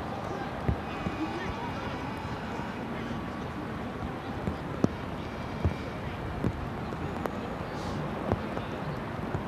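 A man talks briefly at a distance outdoors.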